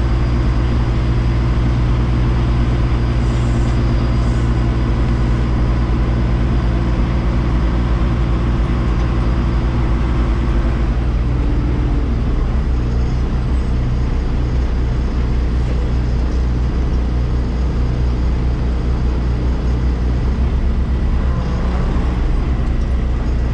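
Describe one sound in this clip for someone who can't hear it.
Wind rushes and buffets past outdoors.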